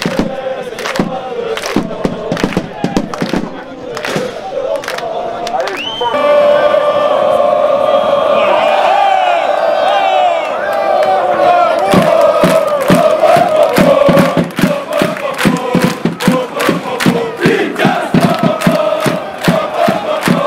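A large crowd of fans chants and sings loudly outdoors.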